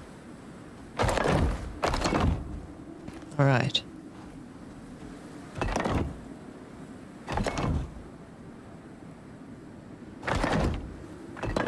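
Heavy stone building pieces thud into place in a game, again and again.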